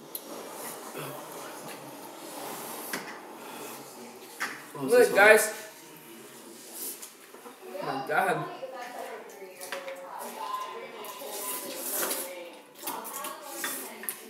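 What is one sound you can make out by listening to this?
Teenage boys slurp noodles.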